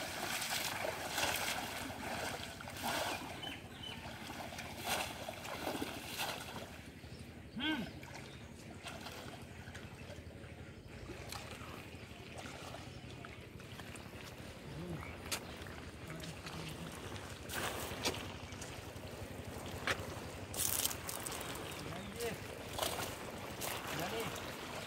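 Men wade and splash through shallow muddy water.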